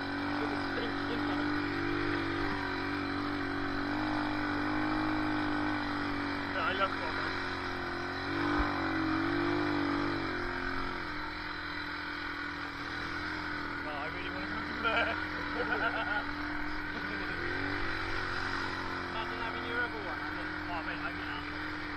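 An all-terrain vehicle engine idles steadily close by.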